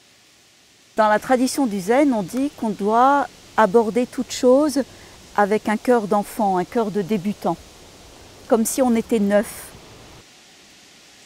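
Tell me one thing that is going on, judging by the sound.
An elderly woman speaks calmly, close by.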